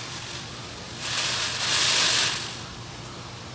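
A small bird flaps its wings close by as it flies past.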